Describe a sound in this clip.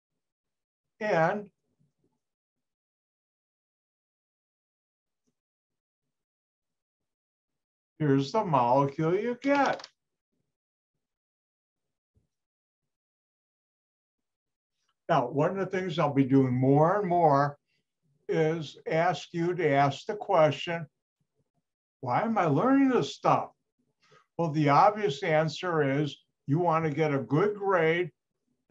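An elderly man speaks calmly over an online call, in bursts with pauses.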